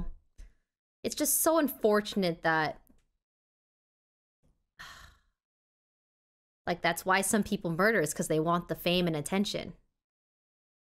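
A young woman speaks into a close microphone with animation.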